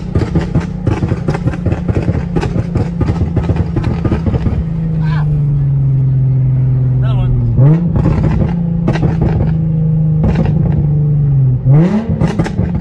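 A car engine hums loudly from inside the car and surges higher with each gear change.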